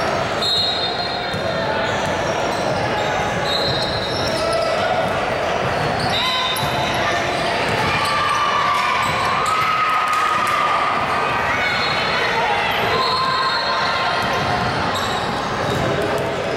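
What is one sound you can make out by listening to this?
A basketball bounces on the court as a player dribbles.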